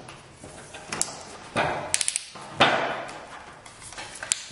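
A keyless drill chuck ratchets with clicks as it is twisted tight by hand.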